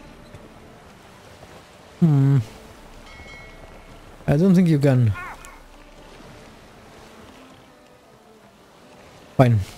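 Wind blows over rough water.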